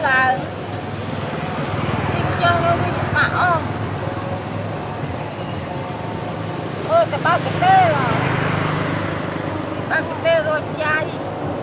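A young boy talks in short high-pitched bursts nearby.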